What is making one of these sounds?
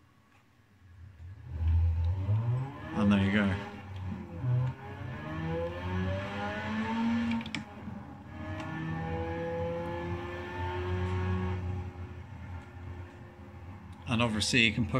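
A racing game's car engine roars and revs through a loudspeaker.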